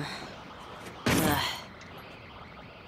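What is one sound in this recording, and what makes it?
A young woman grunts in frustration, close by.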